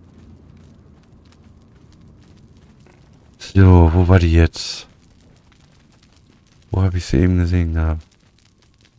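Footsteps crunch softly on snowy rock.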